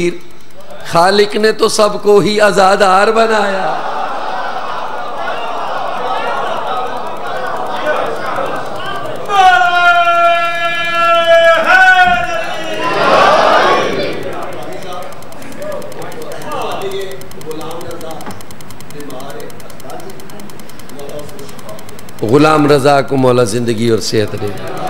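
A man chants loudly and passionately through a microphone and loudspeakers.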